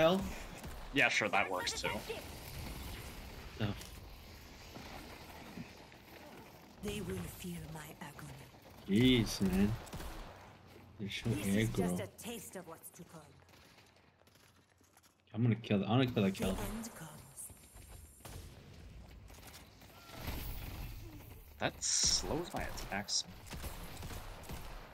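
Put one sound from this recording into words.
Gunshots and magic blasts crack out in quick bursts.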